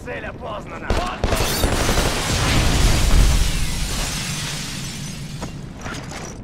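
A heavy explosion booms and rumbles away.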